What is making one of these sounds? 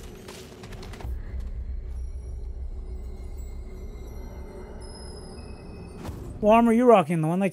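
A deep, steady rumble drones from a glowing doorway.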